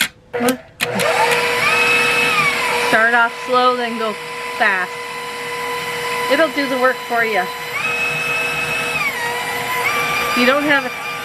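An electric stand mixer starts up and whirs steadily, its motor whine shifting in pitch now and then.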